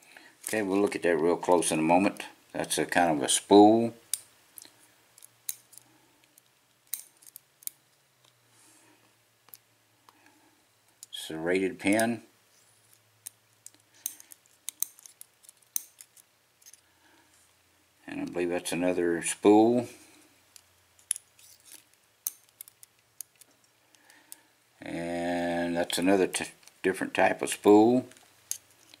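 Tweezers click against small metal lock pins.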